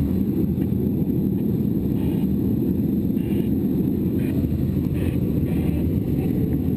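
Wind rushes loudly over a glider canopy in flight, with a low steady roar.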